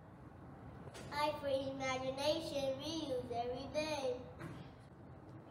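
A young child speaks alone, clearly and slowly.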